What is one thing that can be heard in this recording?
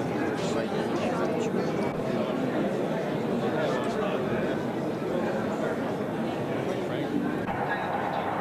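A crowd of men and women murmurs in the background.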